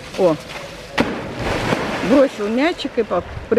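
A heavy splash comes as an animal plunges into water.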